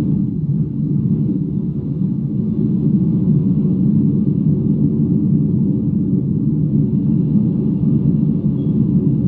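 A finger rubs and brushes against a microphone.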